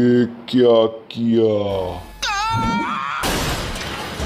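A man shouts in panic.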